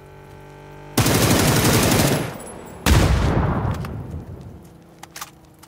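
Loud explosions boom in quick succession.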